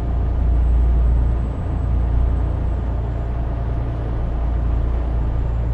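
A truck's diesel engine rumbles steadily while driving.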